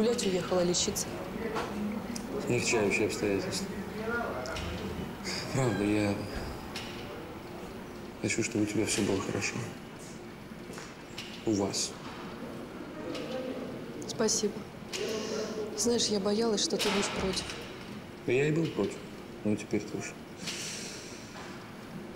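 A man speaks calmly and earnestly nearby.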